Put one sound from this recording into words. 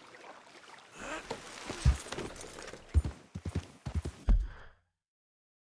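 A horse's hooves thud on the ground as it gallops.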